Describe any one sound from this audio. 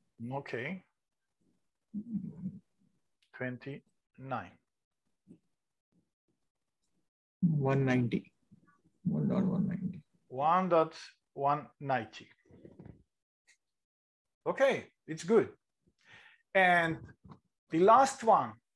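A man speaks calmly into a microphone, explaining in short phrases with pauses.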